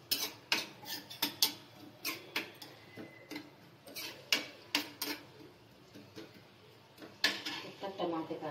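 A metal spoon scrapes and clinks against a metal pan.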